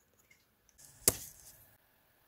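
A pen cap pops off with a sharp click.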